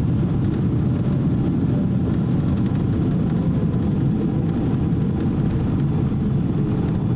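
Tyres rumble on the runway.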